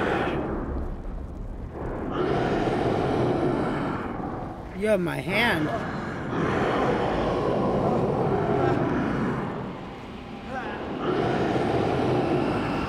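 A man groans and cries out in pain.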